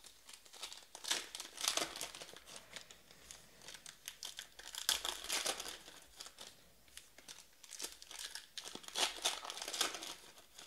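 Hands shuffle and flick through a stack of trading cards with crisp rustling.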